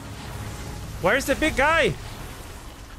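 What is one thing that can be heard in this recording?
A young man exclaims loudly into a close microphone.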